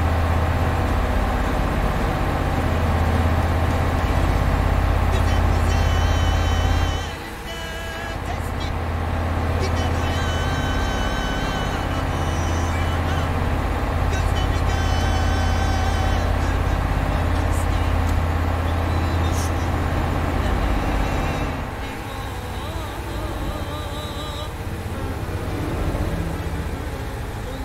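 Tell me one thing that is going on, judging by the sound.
A large engine hums steadily as a bus drives along a road.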